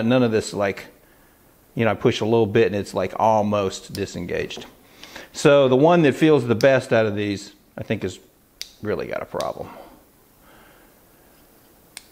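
A folding knife's blade clicks as it is opened and closed.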